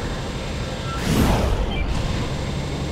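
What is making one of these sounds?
A large explosion bursts with a whooshing roar.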